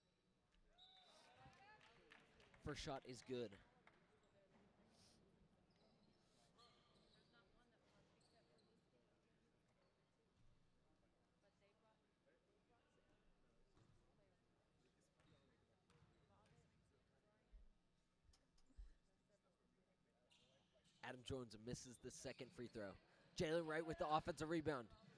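Sneakers squeak sharply on a gym floor in a large echoing hall.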